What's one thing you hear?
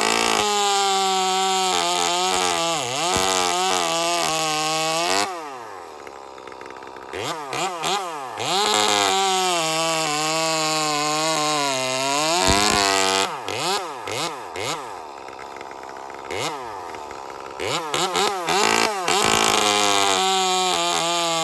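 A chainsaw bites through a thick log.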